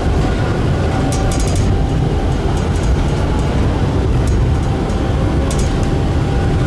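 Tram wheels click over rail joints.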